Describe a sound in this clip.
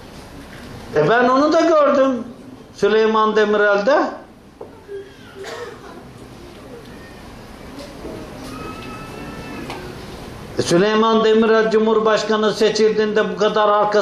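An elderly man sings in long, held notes close by.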